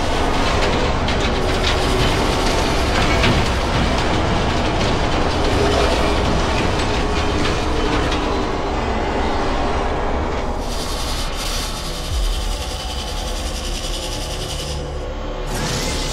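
A remote-controlled drone's engine whirs and hums steadily.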